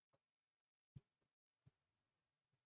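A few hands clap briefly.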